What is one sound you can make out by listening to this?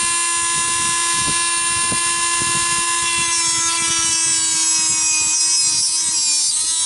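A rotary tool whines at a high, steady pitch.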